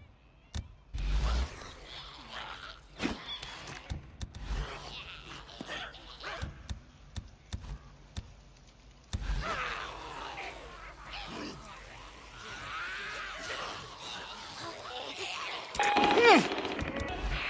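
A thrown object lands with a dull thud.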